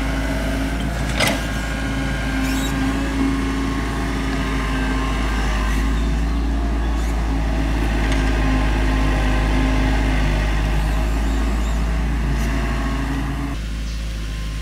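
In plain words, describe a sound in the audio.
An excavator engine rumbles steadily nearby.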